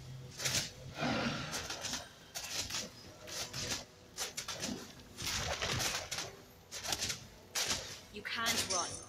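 Swords clash and strike repeatedly.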